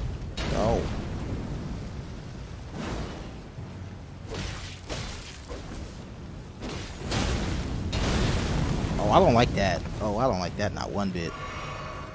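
Fire roars and explodes in a game.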